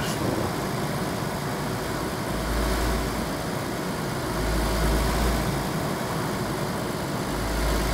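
Tyres roll on asphalt.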